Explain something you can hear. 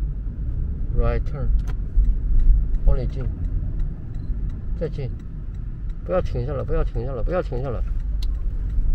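A young woman speaks calmly inside the car.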